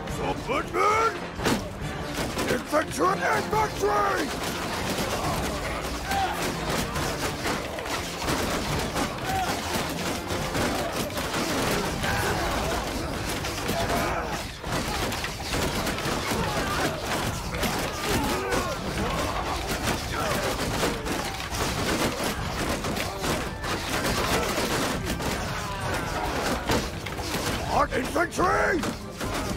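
Swords and shields clash in a steady din of fighting.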